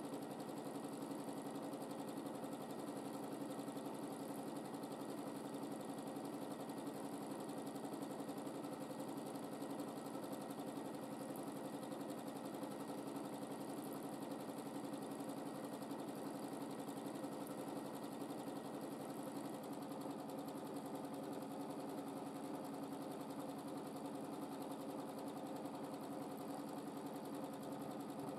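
A sewing machine hums and rattles steadily as it stitches fast.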